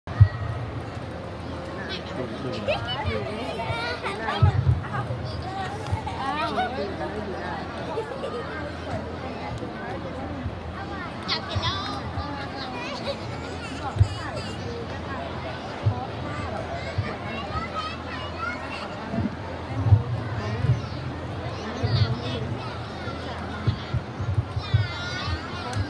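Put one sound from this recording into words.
A crowd of children chatters outdoors in the background.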